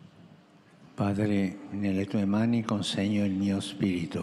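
An elderly man reads out slowly into a microphone over loudspeakers in a wide open space.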